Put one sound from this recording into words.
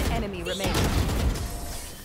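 A rifle fires a burst of rapid shots.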